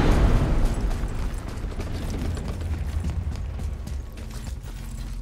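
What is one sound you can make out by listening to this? A low rumbling drone fills an echoing space and slowly fades.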